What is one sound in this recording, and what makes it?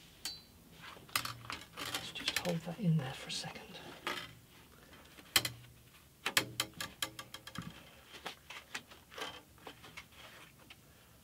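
Wooden pieces knock and rattle against a workbench.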